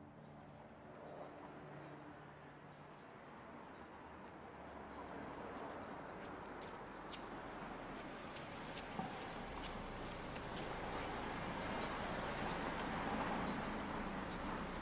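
A car engine hums as the car rolls slowly closer and passes by.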